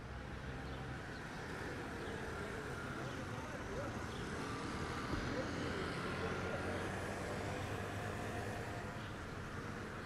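Scooters buzz past on a street.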